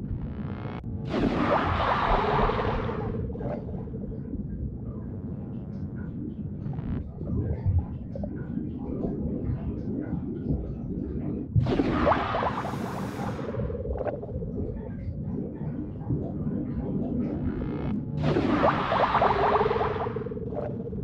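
A body splashes into water.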